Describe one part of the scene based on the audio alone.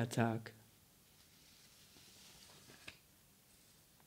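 Paper sheets rustle.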